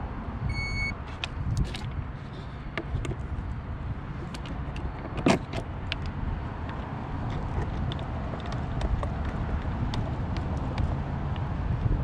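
A plastic panel knocks and clicks as it is handled.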